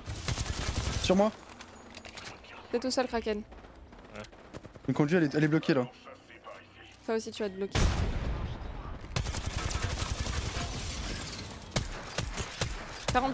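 A young woman speaks with animation into a headset microphone.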